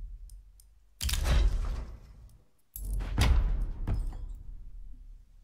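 A game case opens with a heavy whoosh and thud.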